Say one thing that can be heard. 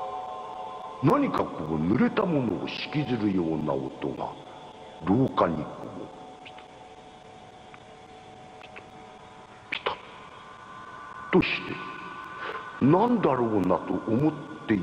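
A man speaks slowly in a low voice, close by.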